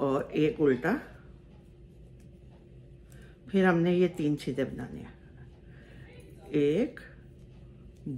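Metal knitting needles click together.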